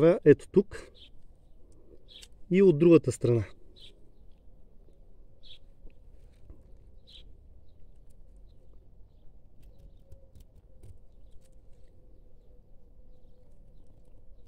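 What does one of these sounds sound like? A knife scrapes softly at the bark of a vine stem.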